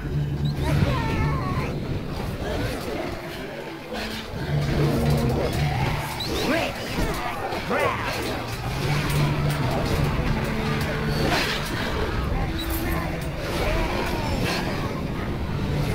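Steady droning music plays throughout.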